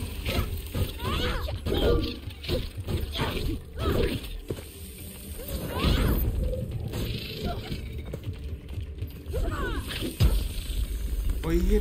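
A staff strikes with sharp impacts and bursts.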